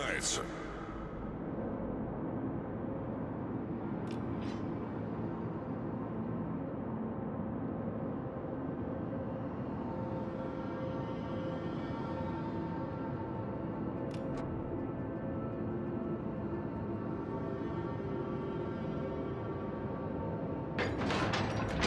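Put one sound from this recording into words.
Waves wash and splash against a ship's hull.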